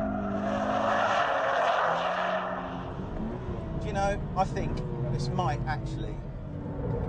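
Tyres squeal as a car slides through a bend.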